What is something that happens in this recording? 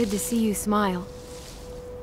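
A young woman speaks warmly.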